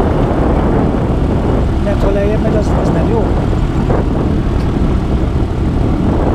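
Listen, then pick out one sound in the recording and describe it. Wind buffets and rumbles against the microphone.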